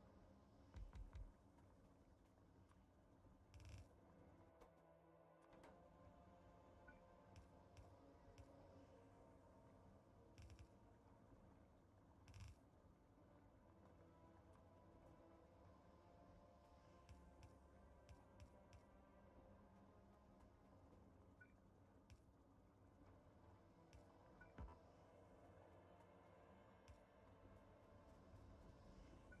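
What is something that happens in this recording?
Factory machines hum and whir steadily.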